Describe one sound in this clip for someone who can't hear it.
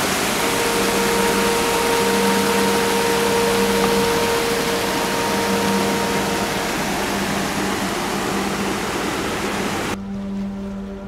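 A shallow river rushes and splashes over rocks close by.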